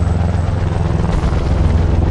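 Wind rushes past during a skydive.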